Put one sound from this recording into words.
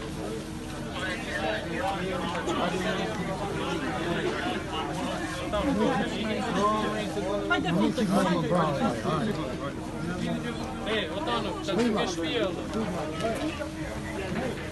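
Several men talk over one another nearby, excitedly.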